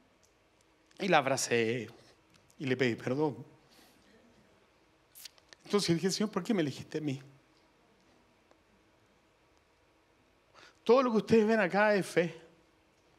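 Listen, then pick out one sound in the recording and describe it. A middle-aged man speaks through a microphone with animation, in short bursts with pauses.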